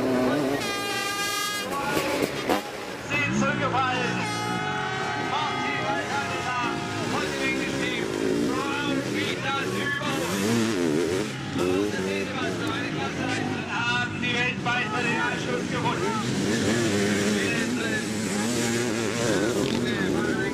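Motorcycle engines roar and rev loudly throughout.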